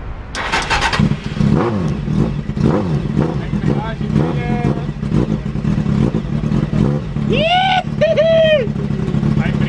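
A car engine idles and revs.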